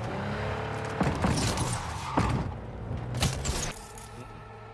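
A car crashes with loud metal bangs and scrapes.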